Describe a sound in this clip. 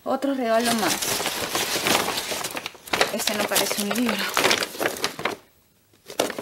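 Wrapping paper crinkles and rustles as a gift is unwrapped.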